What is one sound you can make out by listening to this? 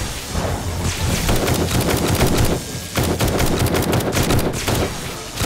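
Rapid energy blasts crackle and pop.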